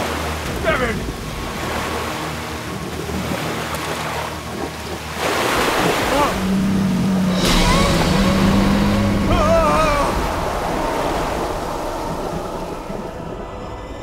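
Water splashes and churns violently.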